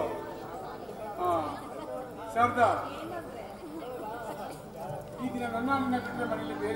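A man speaks with animation into a microphone, heard over loudspeakers.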